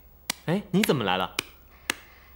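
A young man speaks briefly and lightly, close by.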